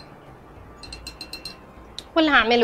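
A whisk clinks against a bowl.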